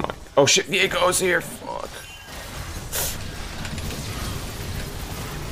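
Magic spell effects whoosh and crackle in a fight.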